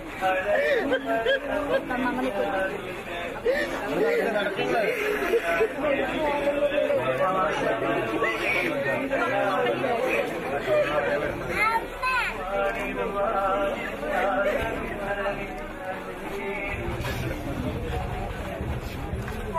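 Women wail and sob loudly nearby.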